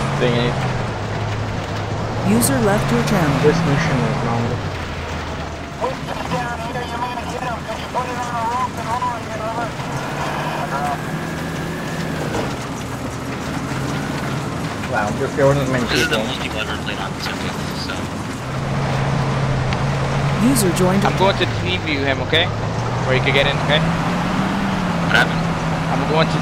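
A heavy vehicle engine drones steadily, rising and falling in pitch.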